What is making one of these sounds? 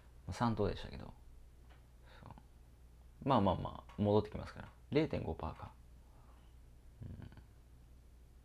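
A young man speaks calmly and close by, in short phrases with pauses.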